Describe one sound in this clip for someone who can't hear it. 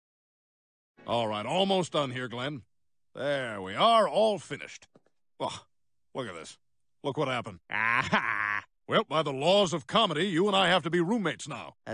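A man talks with animation.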